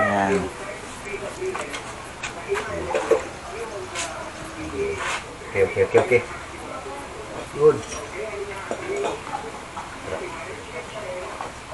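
Metal parts and tools clink on a hard floor.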